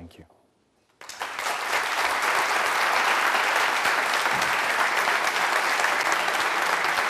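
An audience applauds loudly in a large echoing hall.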